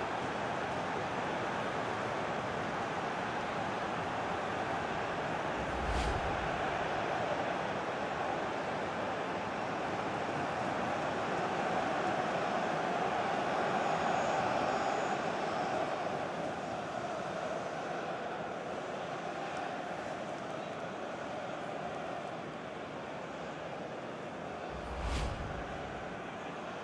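A large stadium crowd roars and cheers steadily throughout.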